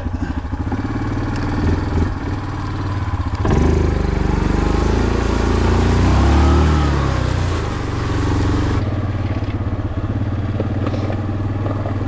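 An all-terrain vehicle engine rumbles steadily.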